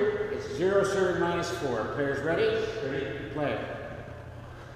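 A man talks casually in an echoing room.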